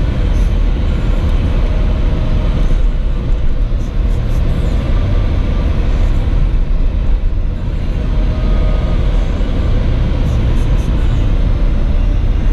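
Wind rumbles against the car.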